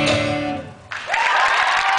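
Acoustic guitars ring out on a final chord.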